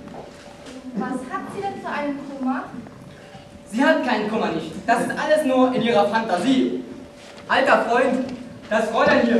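A young man speaks loudly and theatrically in an echoing hall.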